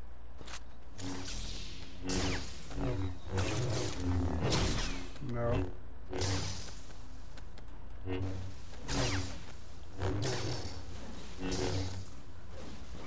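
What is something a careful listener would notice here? A lightsaber swooshes and hums with each swing.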